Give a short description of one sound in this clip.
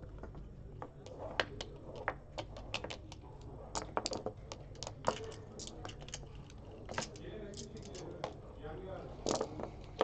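Game pieces click and clack as they are moved on a board.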